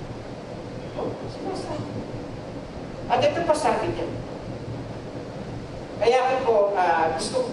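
A man speaks into a microphone over loudspeakers in a large echoing hall, pausing between phrases.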